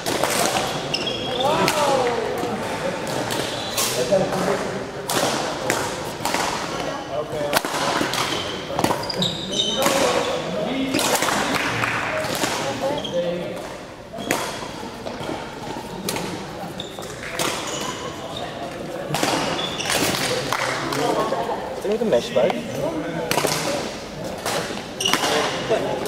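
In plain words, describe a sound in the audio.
Sounds echo around a large hall.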